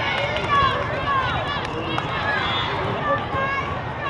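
Young women cheer and shout together.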